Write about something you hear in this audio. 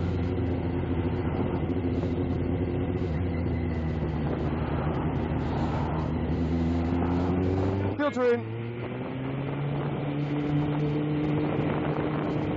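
A vehicle engine drones steadily while driving.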